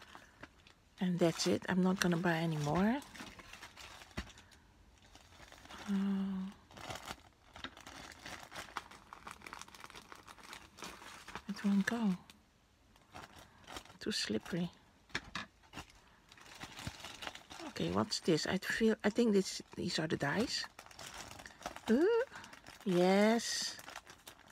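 Plastic mailing bags crinkle and rustle as they are handled.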